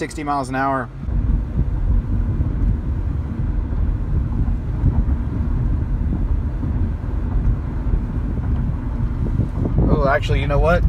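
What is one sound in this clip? A car rumbles along the road, heard from inside.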